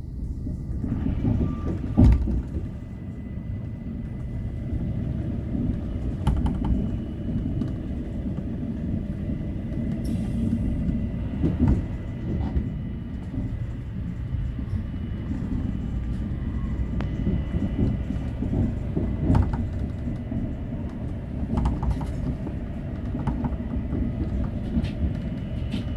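Train wheels clack and knock over rail joints.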